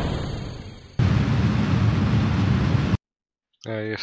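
A rocket engine roars steadily.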